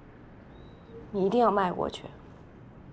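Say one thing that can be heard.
A woman speaks softly.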